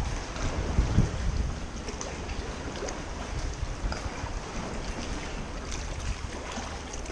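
Water laps and splashes against rocks, echoing in a cave.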